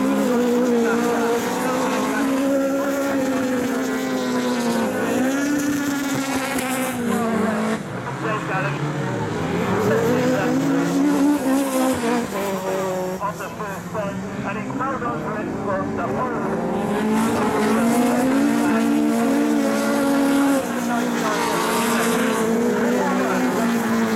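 Racing car engines roar and rev loudly nearby, rising and falling in pitch.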